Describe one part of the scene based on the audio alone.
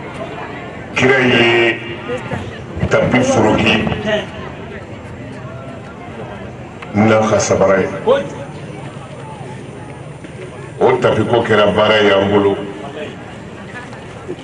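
An elderly man speaks with animation through a microphone and loudspeakers, in bursts.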